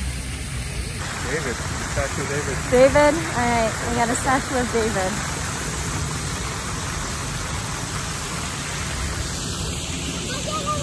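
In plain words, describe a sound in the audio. A fountain's water splashes steadily nearby.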